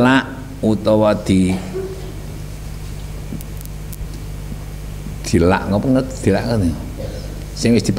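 An elderly man speaks calmly into a microphone, heard through a loudspeaker in an echoing hall.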